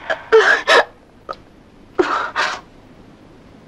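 A woman cries out in distress, close by.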